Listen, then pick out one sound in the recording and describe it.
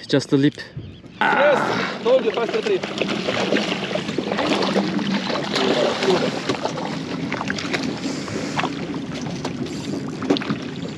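Men talk excitedly close by.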